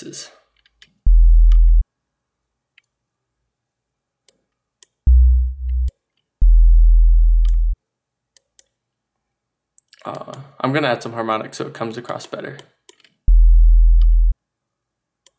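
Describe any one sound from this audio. A deep synthesizer bass note sounds in short, loud bursts.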